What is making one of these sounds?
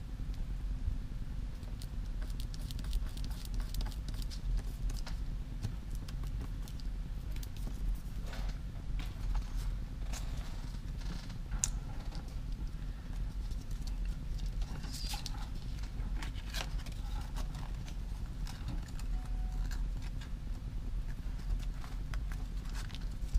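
Plastic film crinkles and rustles under hands.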